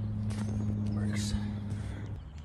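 A golf club thuds into sand.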